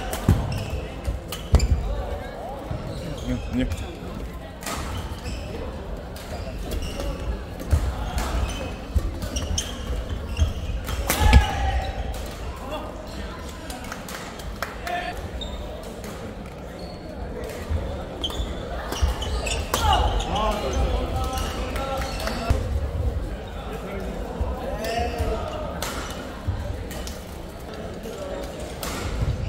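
A crowd of spectators chatters and cheers in the background.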